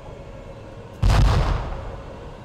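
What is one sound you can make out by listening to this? A large explosion bursts nearby.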